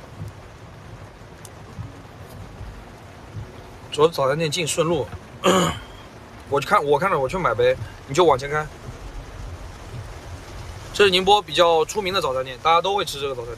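Heavy rain patters steadily on a car windshield.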